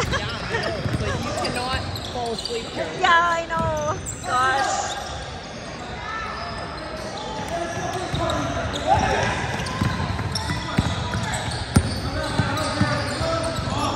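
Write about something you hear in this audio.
A basketball bounces on the hard floor.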